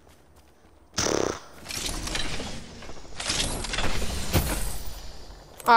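A metal crate clanks and whirs open.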